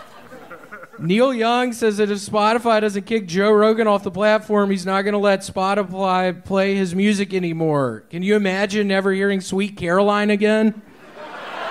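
A man speaks loudly through a microphone, stretching out his words in a sing-song way.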